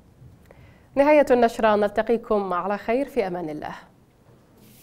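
A young woman speaks clearly into a microphone, reading out calmly.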